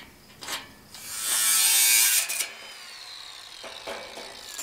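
A handheld power router whirs loudly, then winds down.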